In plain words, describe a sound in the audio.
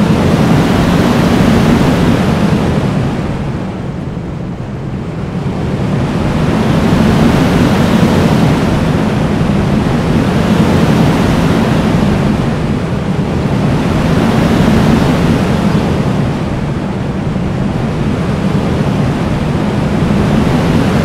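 A roller coaster train rumbles and roars along its track, swelling and easing as it speeds through dips and turns.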